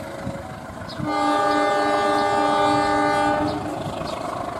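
A train horn sounds loudly in a long steady blast.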